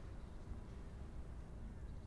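A man types on a keyboard.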